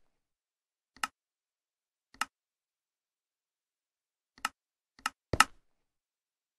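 Menu buttons click sharply.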